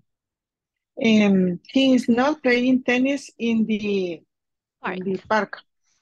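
A second woman speaks over an online call.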